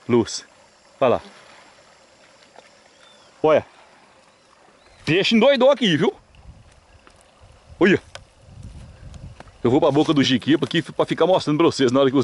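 Water flows gently along a stream.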